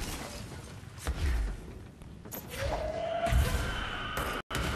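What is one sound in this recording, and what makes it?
Deep booms of explosions thump nearby.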